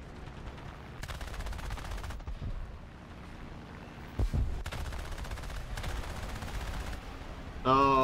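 Aircraft machine guns fire in rapid bursts.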